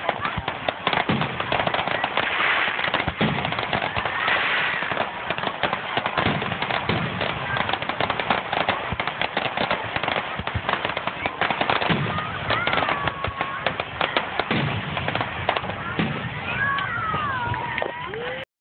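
Fireworks crackle and pop rapidly nearby.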